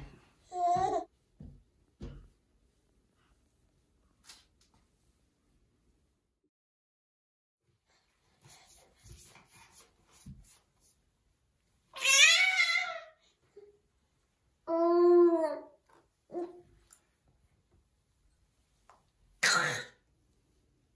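A baby babbles and squeals loudly close by.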